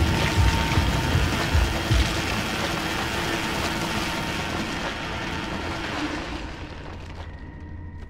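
Food sizzles loudly in a frying pan.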